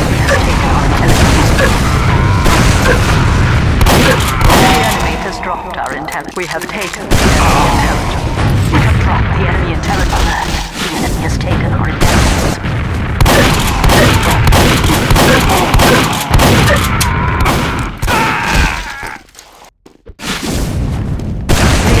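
Rockets explode with loud booms.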